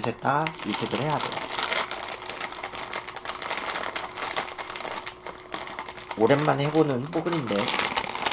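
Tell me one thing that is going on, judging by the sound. A plastic snack bag crinkles and rustles in a man's hands.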